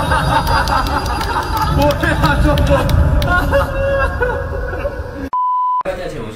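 A young man sings through a microphone over a loud stage sound system.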